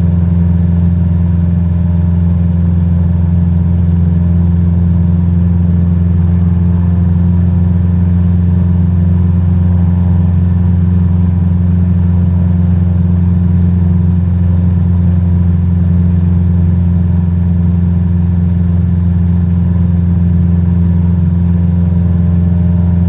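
A light propeller plane's engine drones steadily and loudly.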